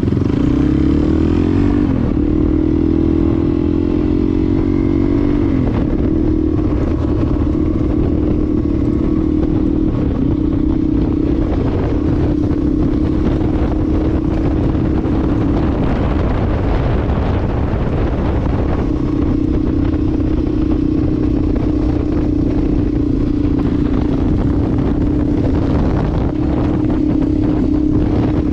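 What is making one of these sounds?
A motorcycle engine hums steadily, shifting pitch as it changes gear.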